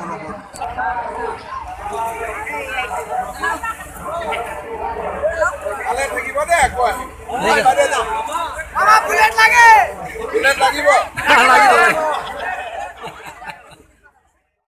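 A crowd of people chatter and cheer loudly.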